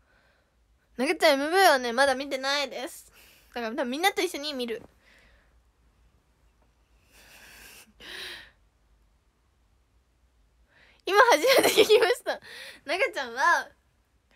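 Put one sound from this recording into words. A young woman speaks animatedly and close up, in bursts with pauses.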